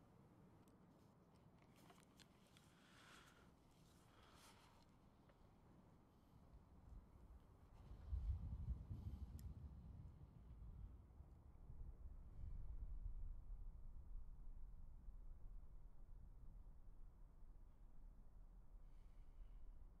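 A ballpoint pen scratches across paper.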